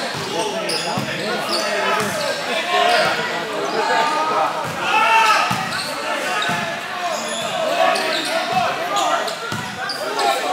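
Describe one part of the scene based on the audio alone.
A volleyball thuds off hands.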